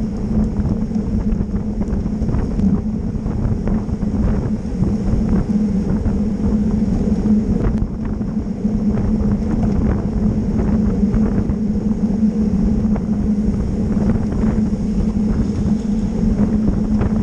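Bicycle freewheels tick and click.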